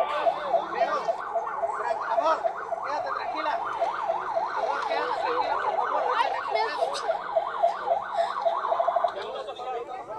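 A man shouts and cries out in distress close by.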